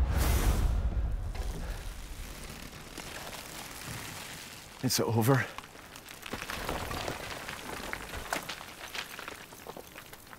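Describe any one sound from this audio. A body crumbles with dry crackling and rustling.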